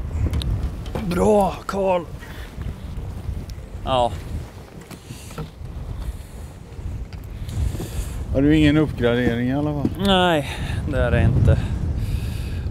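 An elderly man speaks casually, close by, outdoors.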